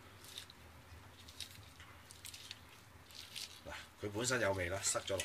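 Wet raw chicken squelches softly as hands rub it.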